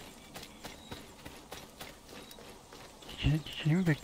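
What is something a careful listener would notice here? Footsteps crunch softly on dry ground.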